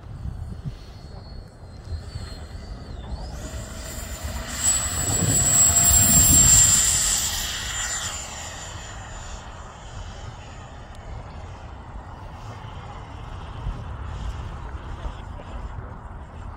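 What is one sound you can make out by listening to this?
A model jet engine whines loudly, rising as the jet speeds past and fading as it climbs away.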